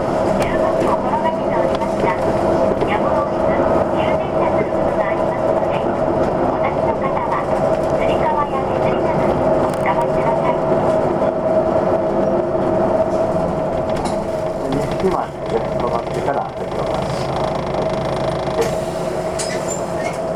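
A vehicle's engine hums steadily from inside as it drives along a street.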